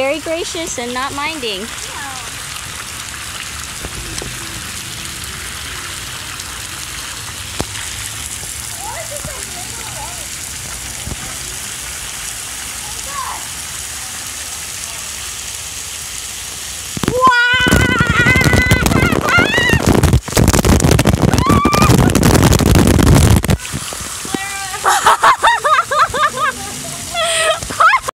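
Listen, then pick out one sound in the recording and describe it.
Water sprays from fountains with a steady hiss.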